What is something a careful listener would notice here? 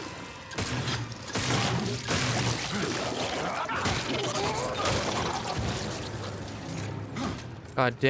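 A monster snarls and shrieks.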